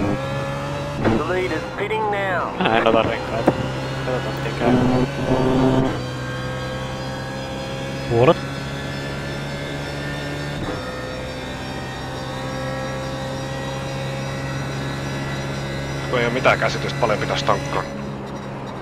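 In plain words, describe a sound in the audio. A racing car engine revs up and down as gears change.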